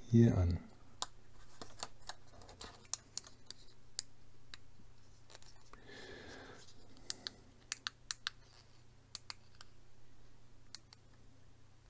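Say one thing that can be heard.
Small metal parts click and tap as they are handled close up.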